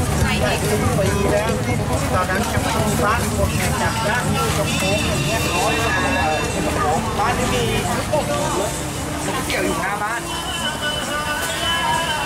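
Many voices of men and women chatter all around in a busy outdoor crowd.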